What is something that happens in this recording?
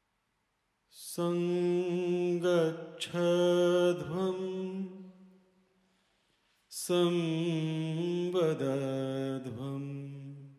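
A man sings into a microphone, bending and sliding his voice.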